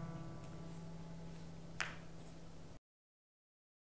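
A choir holds a final sung chord in a large hall.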